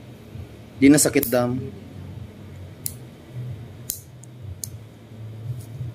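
A nail clipper clicks as it cuts a toenail.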